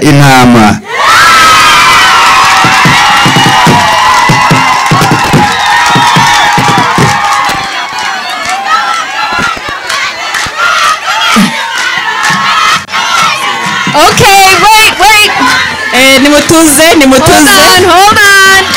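A crowd of young women and girls cheers and shouts excitedly.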